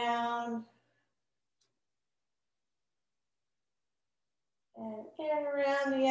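A woman speaks calmly and clearly into a nearby microphone.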